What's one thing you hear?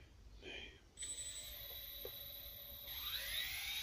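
A drone's electronics beep briefly.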